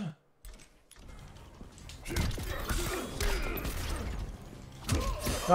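Loud game music and effects play.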